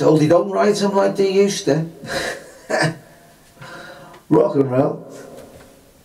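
A man talks close to a microphone with animation.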